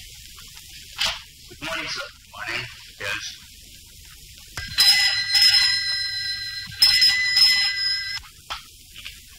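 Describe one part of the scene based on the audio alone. A man reads out a report in a firm voice.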